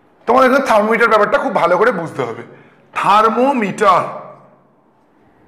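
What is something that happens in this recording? A man speaks clearly and with animation, close by.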